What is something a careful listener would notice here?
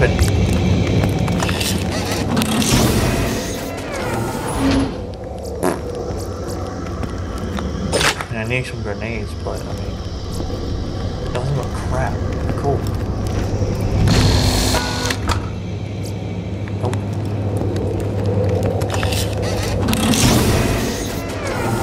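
A metal chest lid creaks open.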